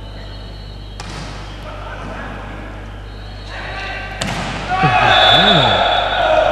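A volleyball is struck by hand during a rally.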